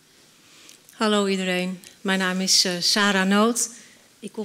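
A woman sings loudly through a microphone in a large echoing hall.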